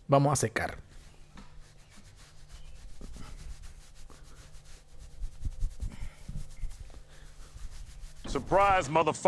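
A towel rubs against hair.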